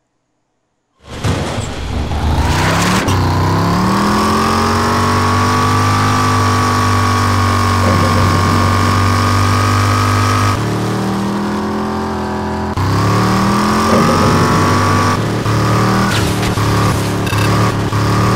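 A car engine roars and revs up.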